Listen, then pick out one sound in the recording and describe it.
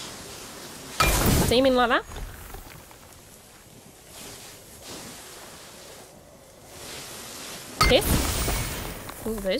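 Heavy blows crash and rumble.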